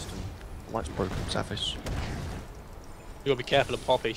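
Game spells crackle and boom during a fight.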